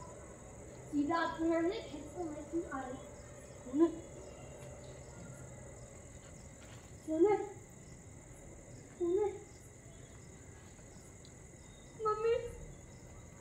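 A boy shouts nearby outdoors.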